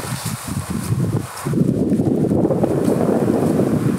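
Footsteps crunch slowly through deep snow.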